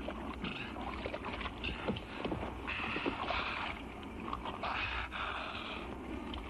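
A diver splashes while swimming.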